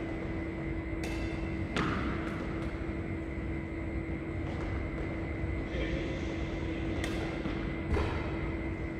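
Shuttlecocks are struck sharply with rackets, echoing in a large hall.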